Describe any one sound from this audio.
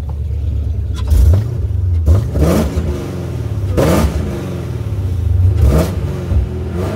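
A car engine revs loudly in short, sharp bursts.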